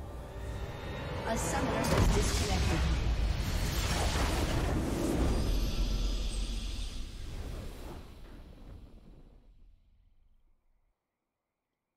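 A triumphant fanfare swells up and then slowly fades away.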